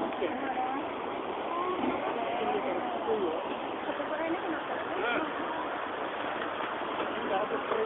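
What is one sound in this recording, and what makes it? Floodwater rushes and churns loudly.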